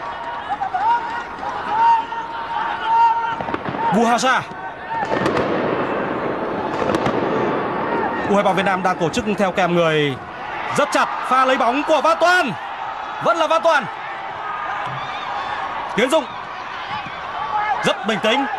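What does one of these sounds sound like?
A large stadium crowd roars in the distance.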